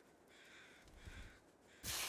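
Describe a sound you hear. A torch flame crackles and roars.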